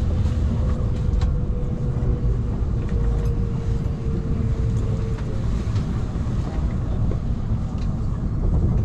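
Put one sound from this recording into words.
A train rumbles low and steady as it rolls in.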